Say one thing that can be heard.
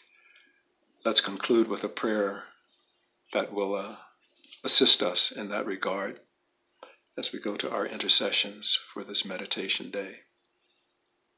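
An elderly man speaks calmly and close to a microphone.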